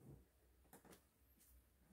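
A pen clicks softly in a hand.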